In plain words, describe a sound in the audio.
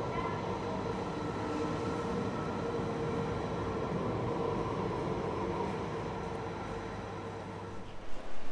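A tram rumbles past with a low, steady hum.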